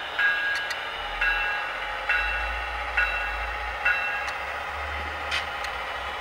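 A model locomotive rolls slowly along its track with a low hum.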